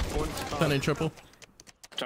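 Keypad buttons beep as a bomb is armed.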